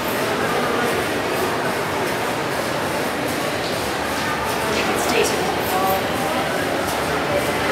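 A young woman talks calmly nearby.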